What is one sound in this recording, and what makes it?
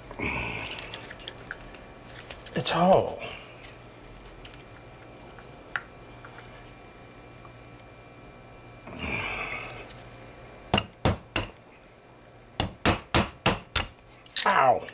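Metal parts clink and tap together.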